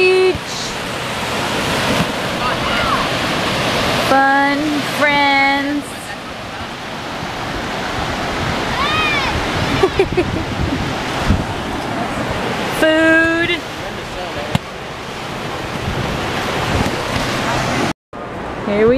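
Surf rushes and wind blows steadily outdoors.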